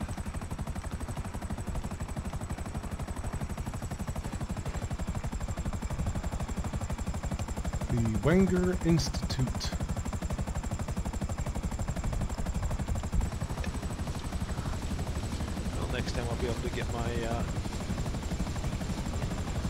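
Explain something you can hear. A helicopter's rotor thumps steadily up close.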